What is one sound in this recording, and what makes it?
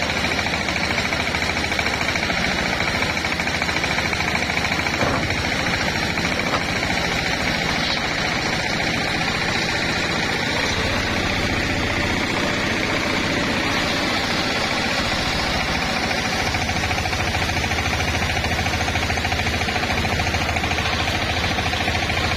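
A motor hums steadily.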